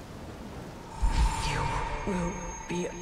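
A woman speaks softly and tenderly.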